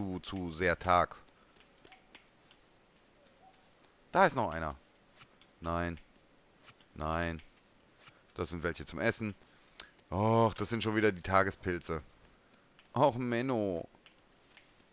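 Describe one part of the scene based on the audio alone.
A man talks into a close microphone in short animated bursts.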